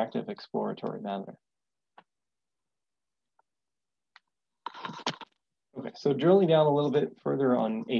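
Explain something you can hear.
A man speaks calmly through a microphone on an online call, pausing between phrases.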